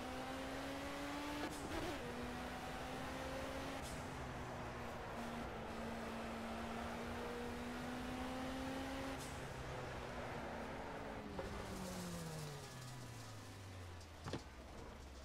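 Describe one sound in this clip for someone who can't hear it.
A racing car engine hums steadily at high speed, then winds down as the car slows.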